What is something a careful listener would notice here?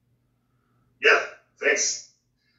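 A man makes short loud exclamations.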